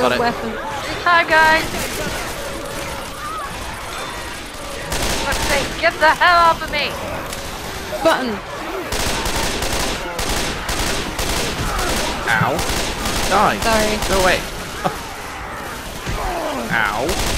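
A young woman talks through a headset microphone.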